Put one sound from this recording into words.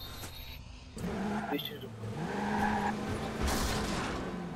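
A van engine revs and roars as the van speeds off.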